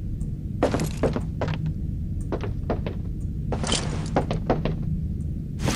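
Footsteps thud across a wooden floor.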